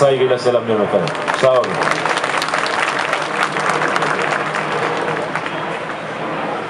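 A crowd applauds and claps.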